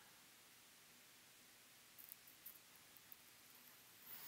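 Molten solder sizzles faintly under a hot soldering iron.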